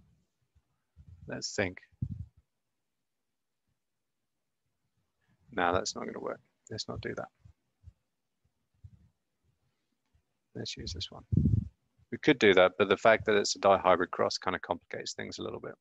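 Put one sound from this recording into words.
A man speaks calmly into a microphone, in bursts with pauses.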